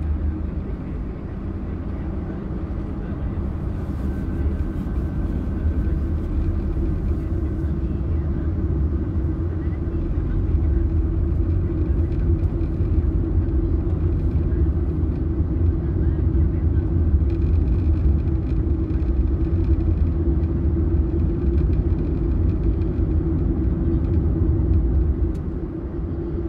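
A car engine hums steadily from inside the cabin while driving.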